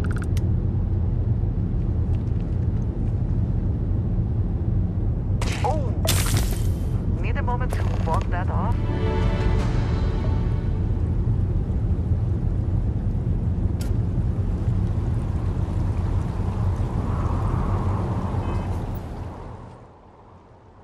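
Heavy footsteps tread on wet, rocky ground.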